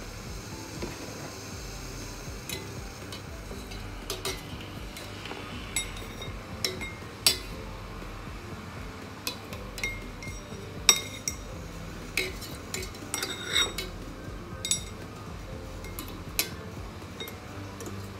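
Water bubbles at a simmer in a pot.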